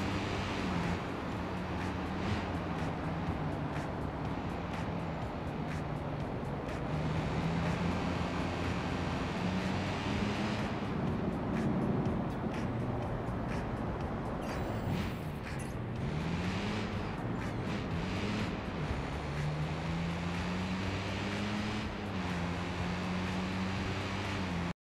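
Tyres hiss on the road.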